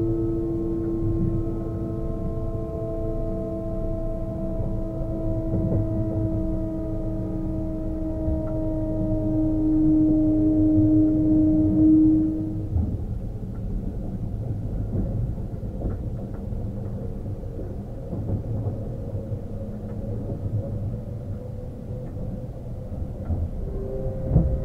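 A train rumbles low and steadily on the tracks.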